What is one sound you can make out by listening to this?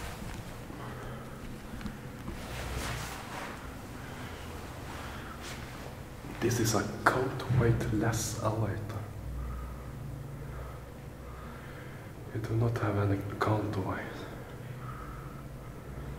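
A lift motor hums steadily as the lift moves.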